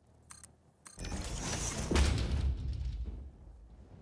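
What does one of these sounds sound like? A wall breaks apart with a crackling rumble.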